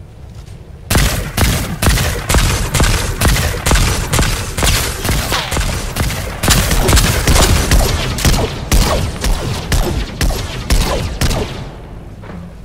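A rapid-fire gun shoots in quick, loud bursts.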